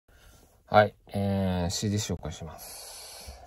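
A young man speaks close by, with animation.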